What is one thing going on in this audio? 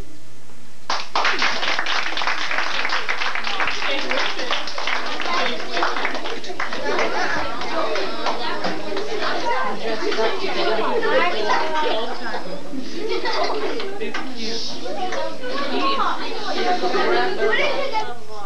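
Many children chatter and talk loudly at once in an echoing room.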